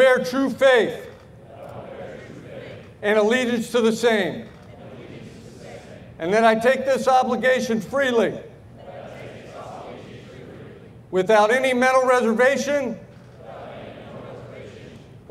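A large crowd of young people repeats the phrases in unison, heard outdoors at a distance.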